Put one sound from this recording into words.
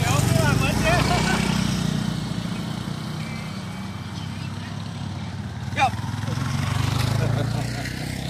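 Motorbike engines hum steadily close by.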